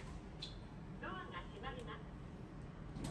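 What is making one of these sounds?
A card reader beeps.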